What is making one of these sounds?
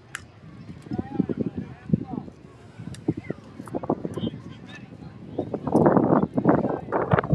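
Young players shout and cheer from across an open field.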